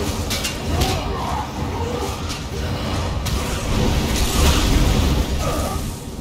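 Spells crackle and whoosh in a fast fight.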